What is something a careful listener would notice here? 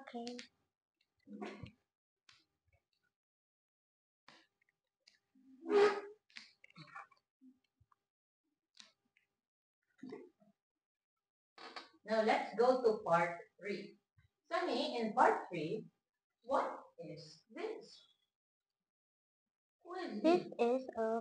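A young girl speaks nearby, haltingly, in short bursts.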